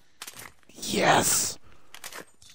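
A game item is picked up with a short metallic clatter.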